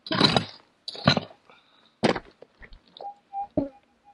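A pick strikes and scrapes hard, stony ground.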